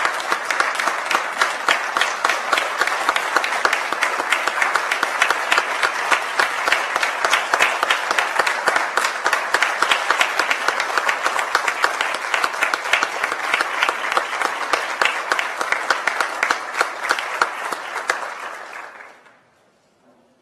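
A crowd applauds steadily in a large room and then the clapping fades out.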